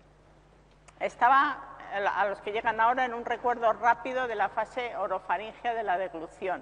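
A middle-aged woman speaks with animation, heard close through a microphone.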